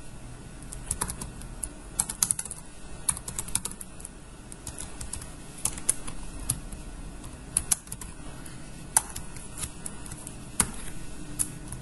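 Keys click on a keyboard in quick, uneven bursts.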